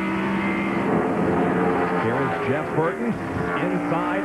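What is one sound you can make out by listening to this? Race cars roar past on a track.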